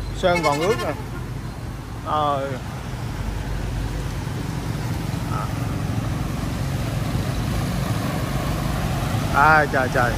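Motorbike engines hum as they pass by.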